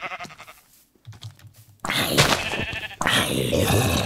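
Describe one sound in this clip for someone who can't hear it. A zombie groans.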